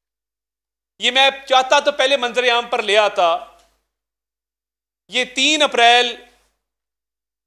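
A man speaks calmly into microphones, close by.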